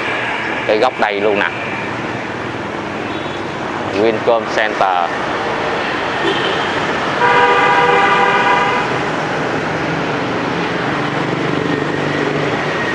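Motorbikes and cars drive along a busy street outdoors.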